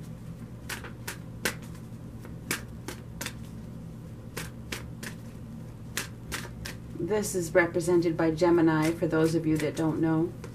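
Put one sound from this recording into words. Playing cards riffle and slap together as a deck is shuffled by hand.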